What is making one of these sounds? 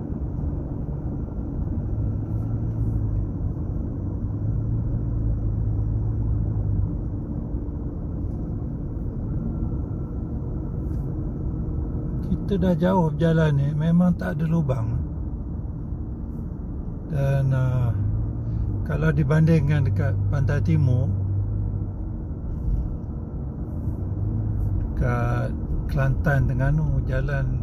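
A car engine hums steadily with a low rumble of tyres on the road.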